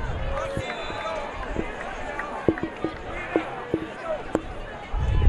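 A football player shouts calls on the field, far off.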